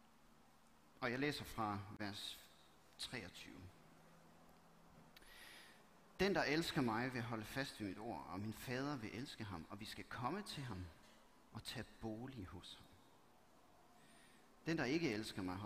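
A man reads aloud calmly through a microphone.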